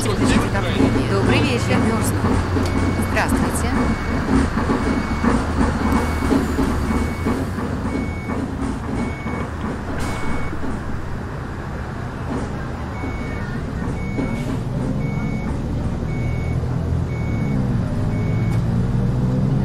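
A warning chime beeps at an even pace.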